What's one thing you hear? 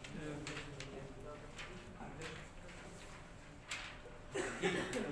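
Paper sheets rustle as they are handed out.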